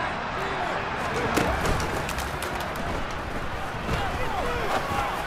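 Football pads crash together as players collide.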